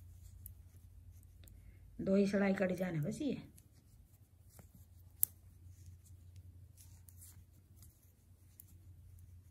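Metal knitting needles click softly against each other.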